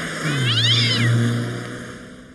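A cat yowls.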